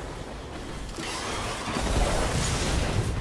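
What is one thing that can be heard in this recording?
An energy blast crackles and booms.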